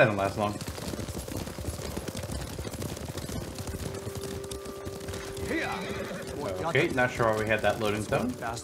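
Horses' hooves clop on a dirt path.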